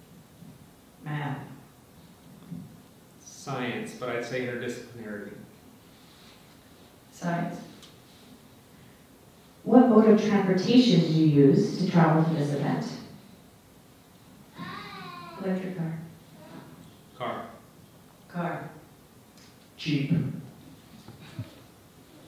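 A woman speaks into a microphone with pauses, heard through loudspeakers in a large room.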